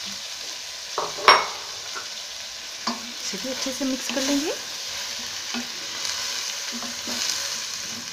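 A spoon scrapes and knocks against a metal pot.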